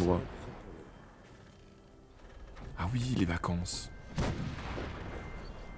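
A young man talks into a microphone with animation, close by.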